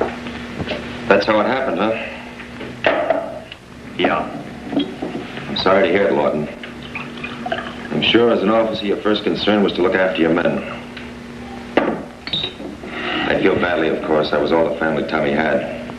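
A man speaks in a low, serious voice.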